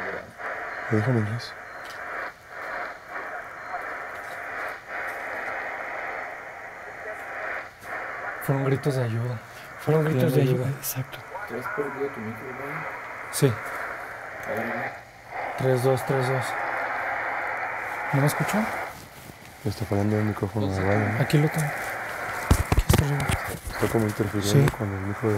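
Men talk in low voices nearby.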